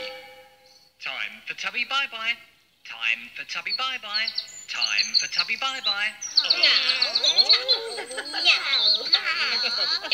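Several childlike voices babble and giggle close by.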